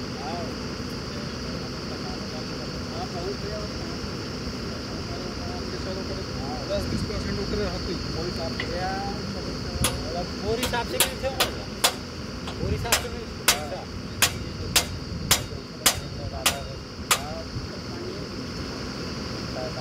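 A diesel engine on a drilling rig runs steadily and loudly.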